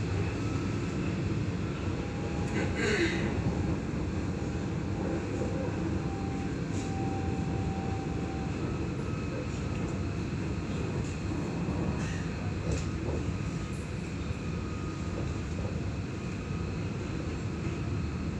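A tram hums and rumbles steadily along its tracks.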